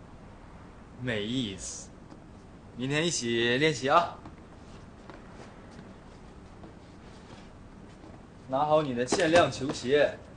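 Young men speak sharply nearby.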